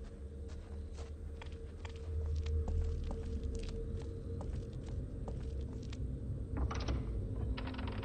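Footsteps walk over gravel and debris.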